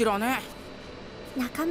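A young boy speaks calmly up close.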